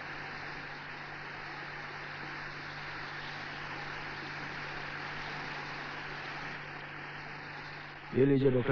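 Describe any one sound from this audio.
Heavy rain pours down steadily outdoors.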